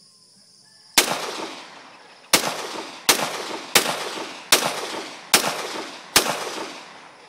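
A handgun fires a rapid series of loud shots that echo outdoors.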